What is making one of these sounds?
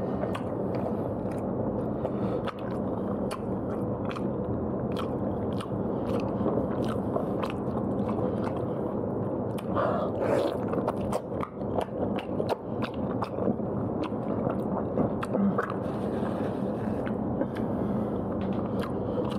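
Crisp roast skin crackles and tears as it is pulled apart by hand.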